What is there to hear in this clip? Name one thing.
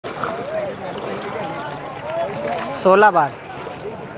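Water splashes as a man rises from a river.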